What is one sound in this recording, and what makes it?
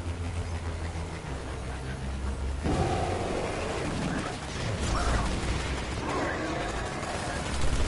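A hover vehicle's engine hums steadily.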